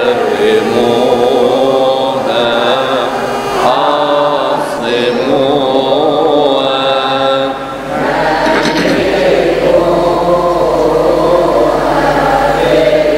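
An elderly man chants in a sustained, melodic voice through a microphone.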